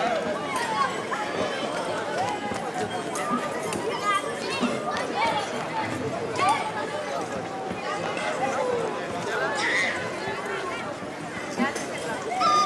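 A group of young girls sings together outdoors through loudspeakers.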